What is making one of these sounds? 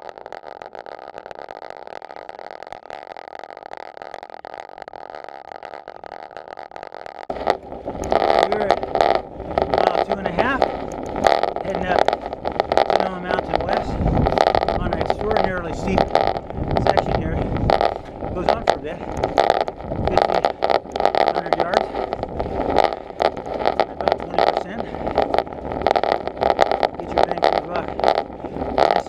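Bicycle tyres roll steadily over rough pavement.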